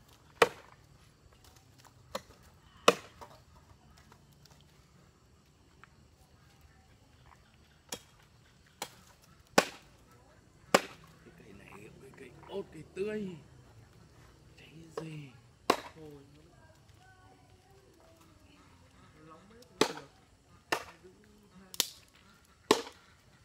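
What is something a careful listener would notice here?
Sharp knocks of wood being chopped ring out now and then.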